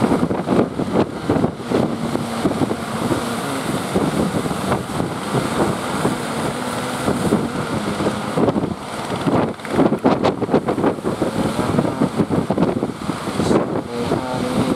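Waves break and wash onto the shore.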